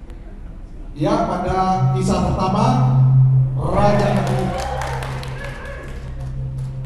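A woman speaks loudly through a loudspeaker in an echoing hall.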